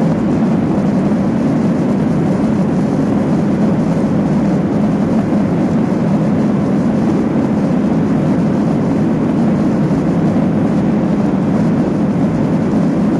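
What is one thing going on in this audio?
Jet engines roar loudly and steadily, heard from inside an aircraft cabin.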